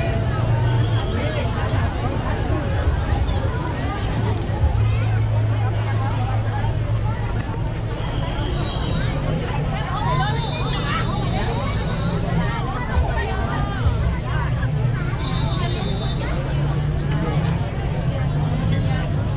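A large outdoor crowd of men and women chatters all around.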